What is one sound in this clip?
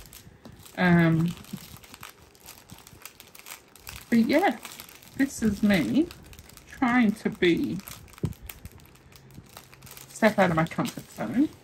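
Plastic wrapping crinkles as it is handled.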